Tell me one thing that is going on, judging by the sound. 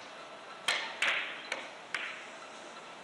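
Billiard balls clack against each other and the cushions.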